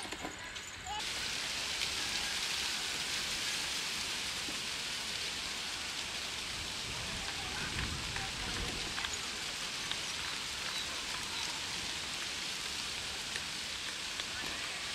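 Water gushes steadily from a pipe.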